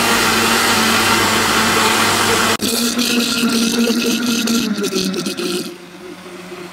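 A blender motor whirs loudly and steadily.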